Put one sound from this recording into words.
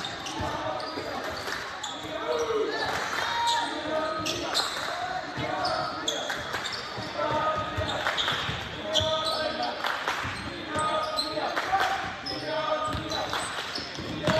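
Basketball sneakers squeak sharply on a hardwood floor in a large echoing gym.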